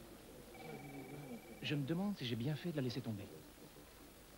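A man speaks clearly and close by.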